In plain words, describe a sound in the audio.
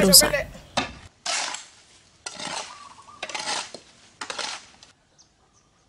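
A shovel scrapes through gravel and stones.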